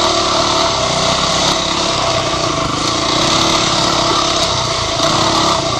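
Another dirt bike engine buzzes a short way ahead.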